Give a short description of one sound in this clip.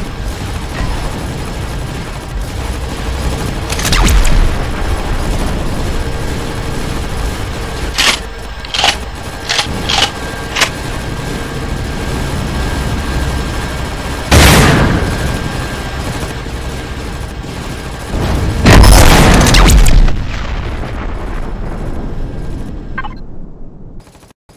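A spaceship engine rumbles steadily.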